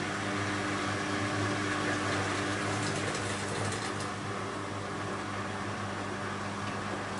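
Water sloshes inside a turning washing machine drum.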